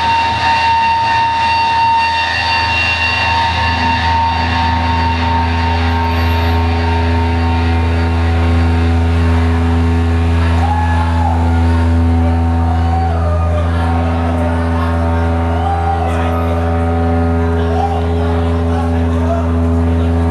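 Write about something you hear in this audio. Electric guitars play loud sustained chords through amplifiers.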